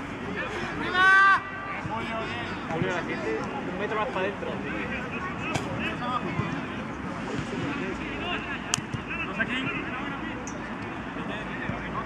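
Men shout and call out to each other across an outdoor pitch.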